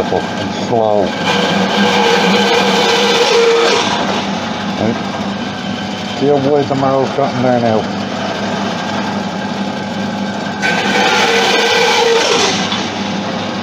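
A band saw blade cuts through antler with a harsh whine.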